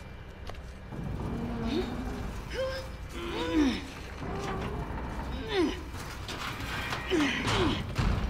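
A heavy metal cabinet creaks and scrapes as it is pushed upright.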